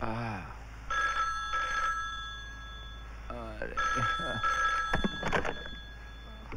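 A telephone rings in short repeated bursts.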